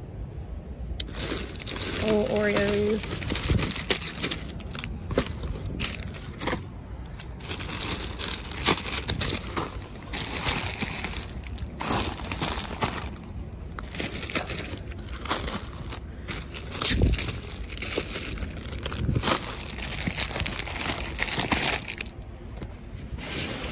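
Plastic wrappers crinkle and rustle as hands dig through them.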